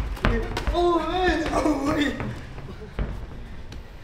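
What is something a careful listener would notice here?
A kick thuds against a pad.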